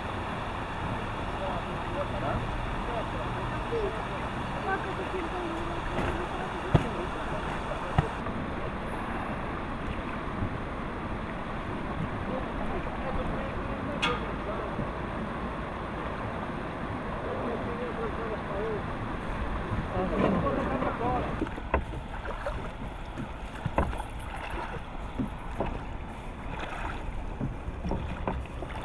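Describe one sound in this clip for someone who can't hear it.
Wind blows outdoors by a river.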